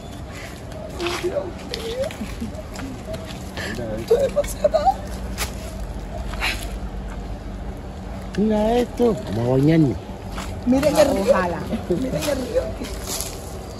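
A woman talks with animation nearby outdoors.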